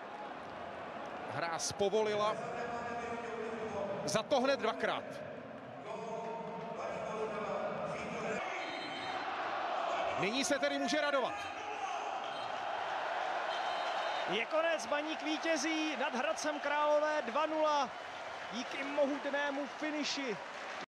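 A crowd roars and cheers in a large stadium.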